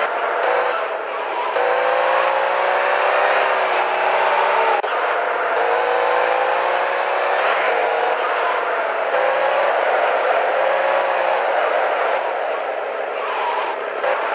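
Tyres screech as a car skids around corners.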